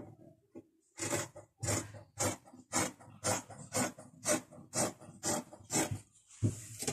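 Scissors snip through fabric in quick, regular cuts.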